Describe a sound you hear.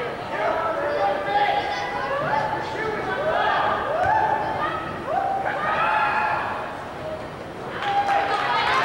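A crowd of spectators shouts and chants in an echoing gym.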